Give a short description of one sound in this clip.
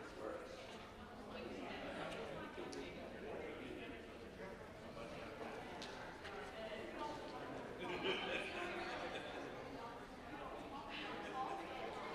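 A crowd of men and women chat quietly in a large echoing hall.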